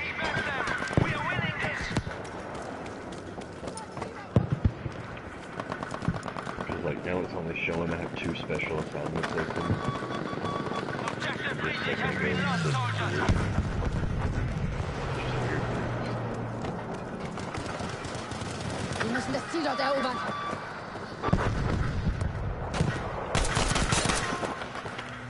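Explosions boom with deep rumbling.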